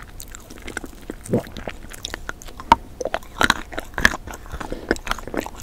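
A woman eats close to a microphone with crisp, wet mouth sounds.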